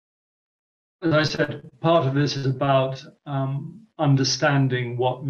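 A man speaks calmly, heard through an online call.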